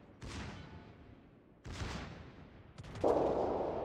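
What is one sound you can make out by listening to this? Heavy naval guns fire booming salvos.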